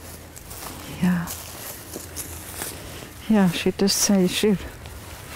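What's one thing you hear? An elderly woman speaks calmly and quietly, close by.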